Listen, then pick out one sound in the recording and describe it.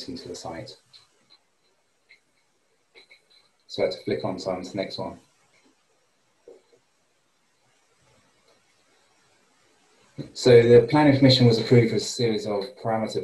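A man talks calmly over an online call, with pauses.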